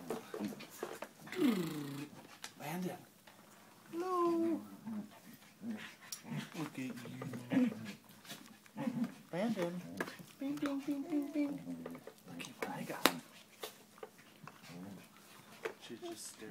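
A plastic baby toy rattles and clicks.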